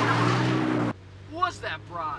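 A young man talks inside a car.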